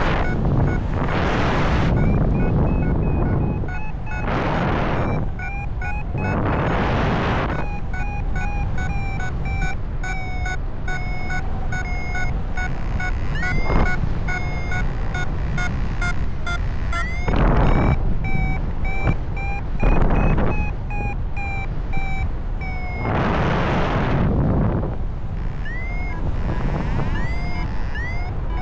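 Wind rushes loudly past in flight.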